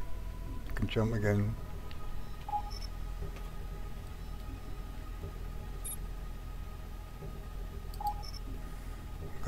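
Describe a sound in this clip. A soft electronic beep sounds.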